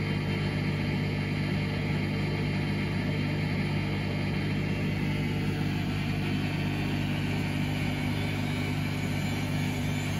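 Water sloshes inside a washing machine.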